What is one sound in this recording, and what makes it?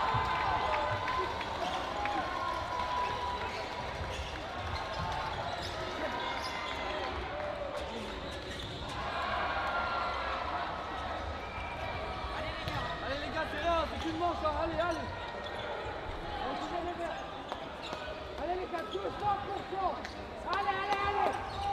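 A crowd of players and spectators chatters and calls out in a large echoing hall.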